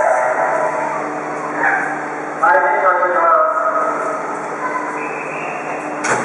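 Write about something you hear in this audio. An electric train hums and whines as it slowly rolls in and brakes.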